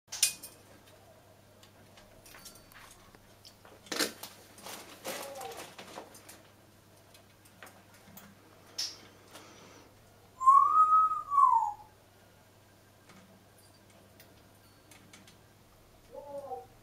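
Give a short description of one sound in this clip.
A parrot's beak clicks and scrapes against a metal perch.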